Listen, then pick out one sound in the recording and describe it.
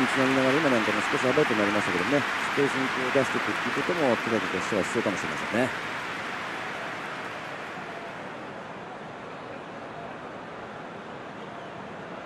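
A large stadium crowd roars loudly and slowly fades.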